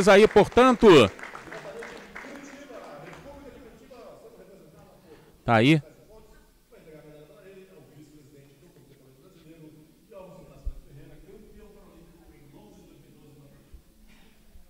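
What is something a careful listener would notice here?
Men and women chatter quietly in the background.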